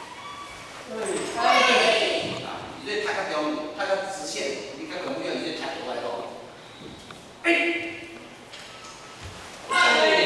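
A group of children and young people shout together in unison in an echoing hall.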